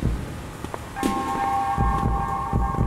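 Music plays from a portable stereo.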